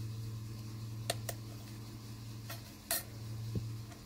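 A metal blade clicks lightly against a hard surface.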